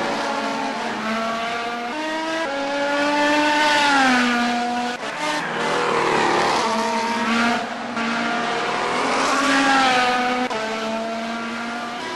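A race car engine roars, rising in pitch and dropping sharply with each gear change.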